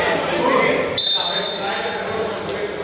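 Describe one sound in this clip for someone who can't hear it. A referee's whistle blows once, sharply.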